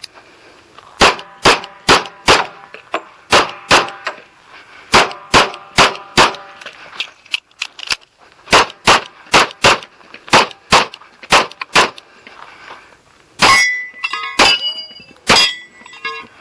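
Pistol shots crack in quick bursts outdoors.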